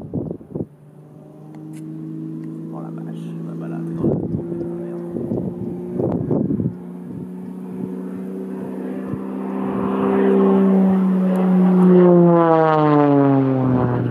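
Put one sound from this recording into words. A small propeller plane's engine drones overhead, growing louder as it nears and dropping in pitch as it passes.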